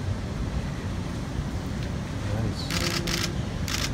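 A man unfolds a rustling jersey.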